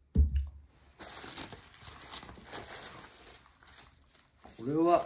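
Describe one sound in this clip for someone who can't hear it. Plastic wrapping rustles and crinkles as it is handled.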